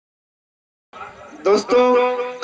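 A young man recites loudly through a microphone.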